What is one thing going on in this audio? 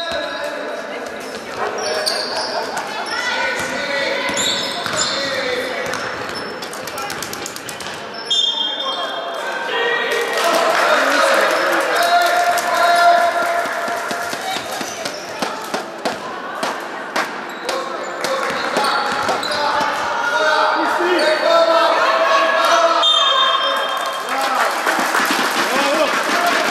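Young women call out and shout in an echoing hall.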